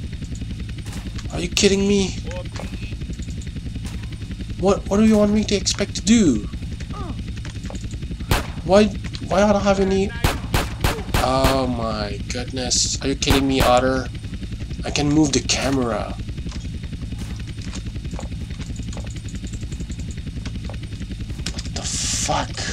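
A helicopter hovers with its rotor thudding.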